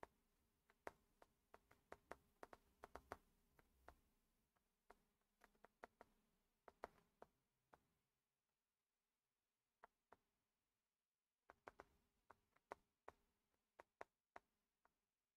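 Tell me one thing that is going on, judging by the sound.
A stylus taps and clicks sharply on a hard surface.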